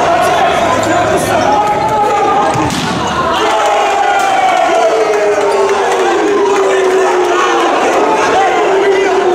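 A crowd of spectators chants and sings loudly in a large echoing hall.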